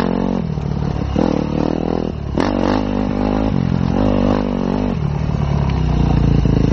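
Tyres crunch over a rocky dirt track.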